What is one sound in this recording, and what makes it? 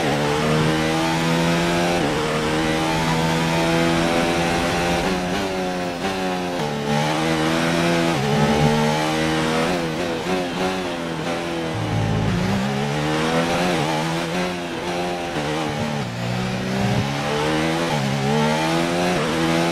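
A racing car engine screams, rising and falling in pitch as it shifts gears and slows for corners.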